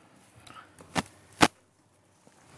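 Pruning shears snip sharply at a branch.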